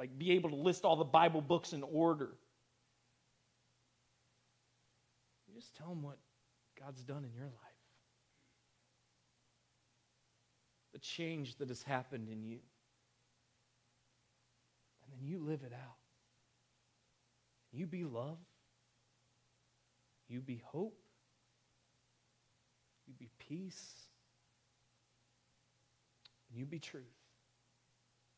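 A young man speaks with animation through a microphone, in short bursts with pauses.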